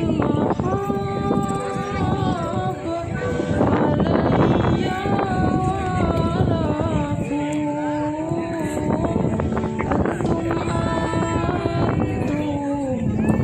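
A group of women chants together in long drawn-out tones.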